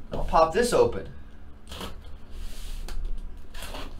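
A cardboard box scrapes and rustles as hands handle it.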